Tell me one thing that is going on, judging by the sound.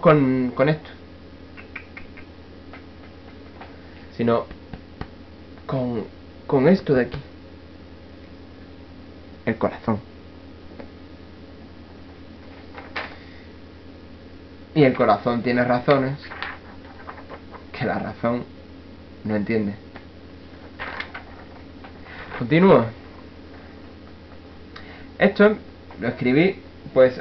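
A young man speaks casually in short bursts close to a microphone.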